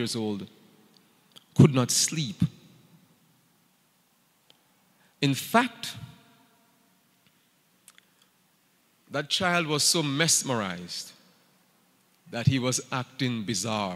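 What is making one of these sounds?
A man speaks with animation into a microphone, in short phrases with pauses.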